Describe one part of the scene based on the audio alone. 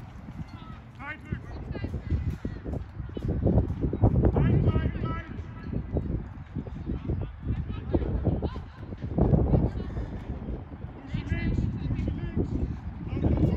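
Young men shout to each other at a distance across an open field.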